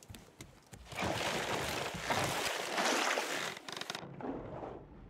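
Water splashes loudly as something plunges into the sea.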